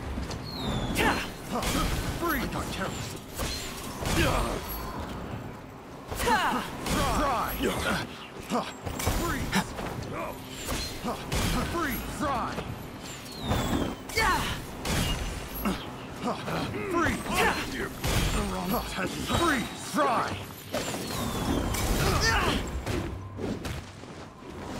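Swords swish and strike in quick bursts during a fight.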